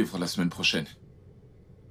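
A young man speaks quietly and earnestly nearby.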